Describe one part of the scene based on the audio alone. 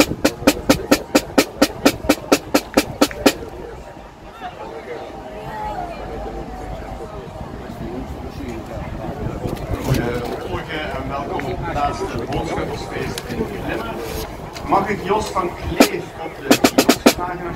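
A drum taps a quick, steady beat close by.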